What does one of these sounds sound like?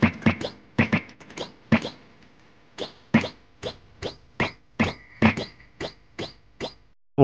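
Soft springy thuds sound in quick succession.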